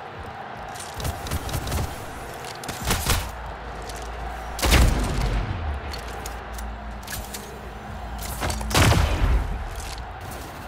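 Heavy gunshots boom in short bursts, each with a rumbling tail.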